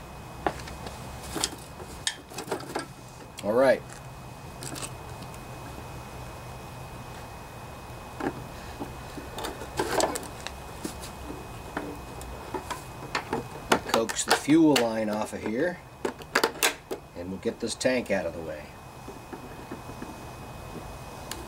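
Metal parts clink and clatter as an engine is handled.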